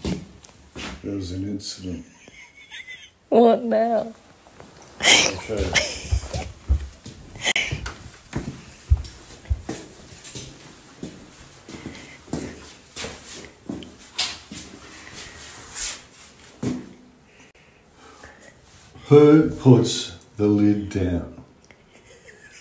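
A middle-aged man speaks calmly close by.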